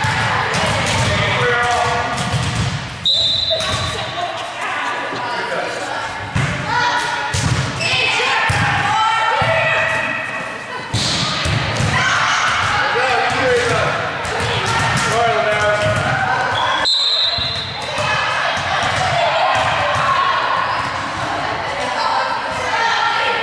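Young women call out and chatter loudly in a large echoing gym.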